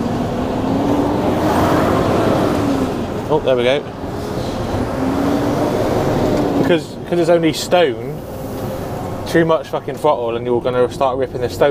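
A windscreen wiper sweeps across the glass.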